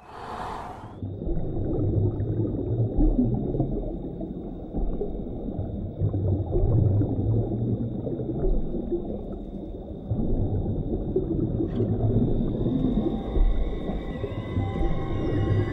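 Water churns and rushes steadily.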